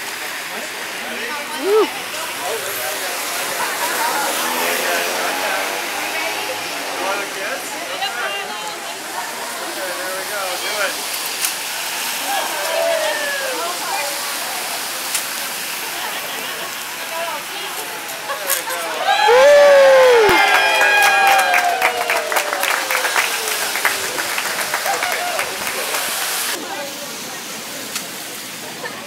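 A crowd of adults chatters outdoors.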